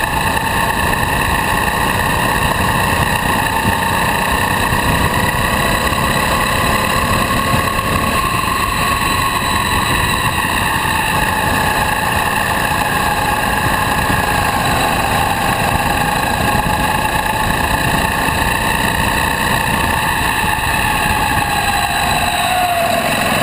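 A kart engine drones loudly and steadily close by, its pitch rising and falling with speed.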